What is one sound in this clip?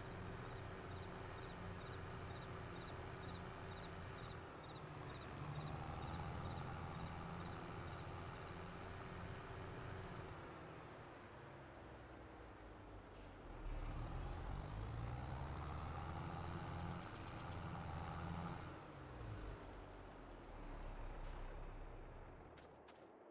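A tractor engine rumbles steadily, rising and falling as it speeds up and slows.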